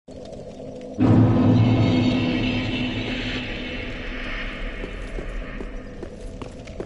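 A loud deep rumble booms and slowly fades.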